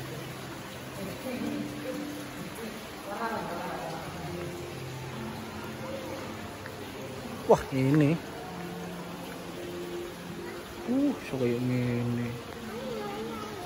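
Men and women talk indistinctly nearby.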